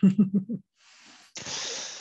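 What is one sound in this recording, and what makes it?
A woman speaks and laughs over an online call.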